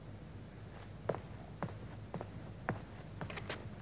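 A man knocks on a wooden door.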